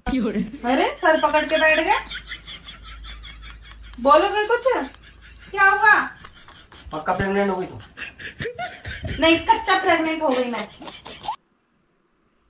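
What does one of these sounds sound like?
A woman speaks loudly and angrily, close by.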